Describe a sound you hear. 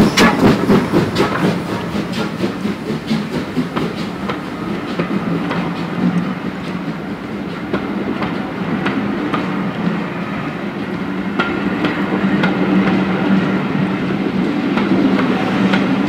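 Railway carriages rattle and clatter over the rails.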